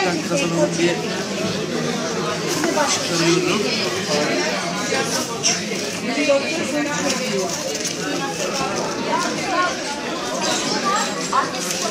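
Paper and plastic wrapping rustle and crinkle.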